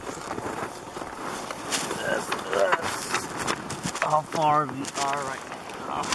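Snow crunches and scrapes as a man crawls into a snow hole.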